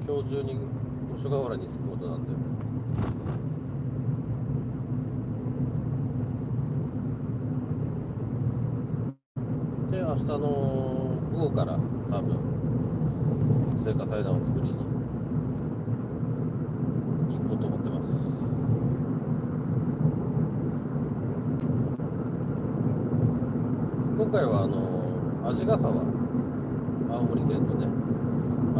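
Tyres rumble steadily on a paved road.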